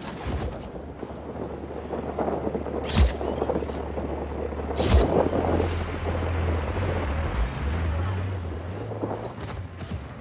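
A low engine rumbles as a vehicle drives past.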